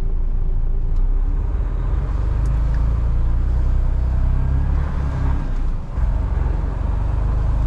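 A truck engine grows louder as the truck pulls away.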